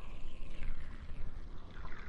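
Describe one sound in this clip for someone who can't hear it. A blade slices wetly into flesh.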